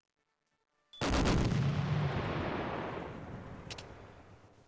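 A battleship's main gun fires with a deep boom that rolls away.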